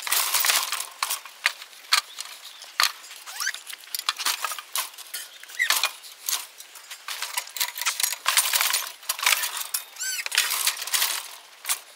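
Metal gates clank and rattle.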